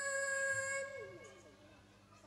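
A girl sings up close.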